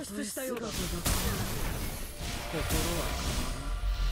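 Magic spells crackle and blast in a fight.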